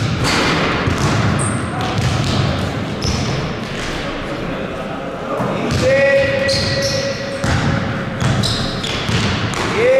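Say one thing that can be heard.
A basketball bounces on a wooden floor in an echoing gym.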